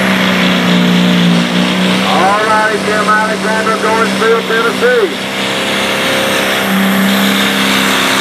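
A heavy tractor engine roars loudly and steadily.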